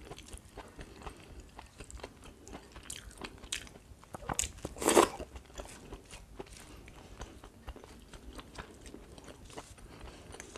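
A young woman chews and smacks her lips close up.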